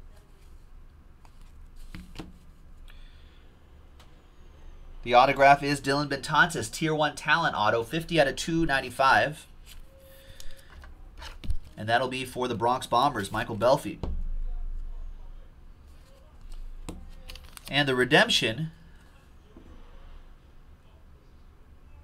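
Cards rustle and slide in the hands.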